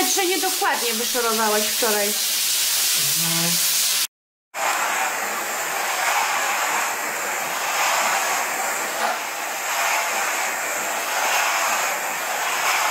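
A steam cleaner hisses steadily as it sprays steam.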